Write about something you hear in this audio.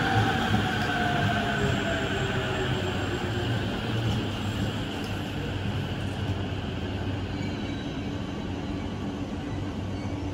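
A train rumbles and rattles past along the tracks close by.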